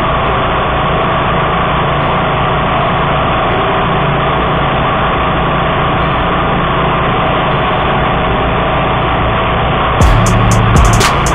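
A small petrol engine runs steadily and loudly nearby.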